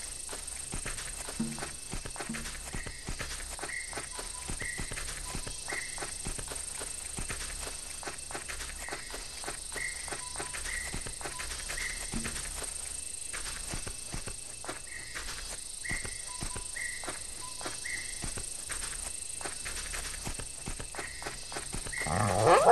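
A large reptile's clawed feet thud softly on dry ground as it walks.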